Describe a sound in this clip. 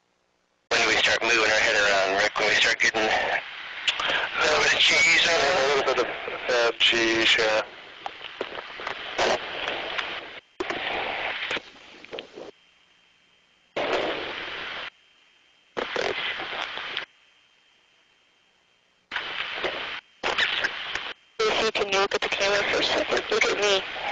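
A man speaks over a crackly radio intercom in short bursts.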